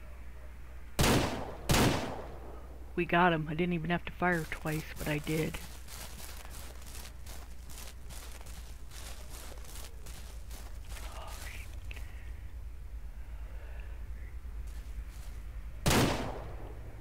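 Gunshots crack loudly from a pistol.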